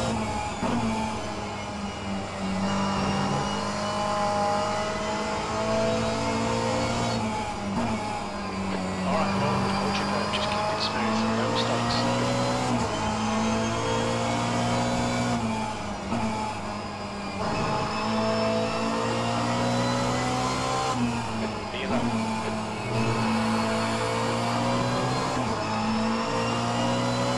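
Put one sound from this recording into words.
A racing car engine roars, revving up and dropping sharply with each gear change.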